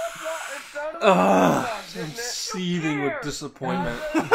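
A second young man reacts with loud excited exclamations close by.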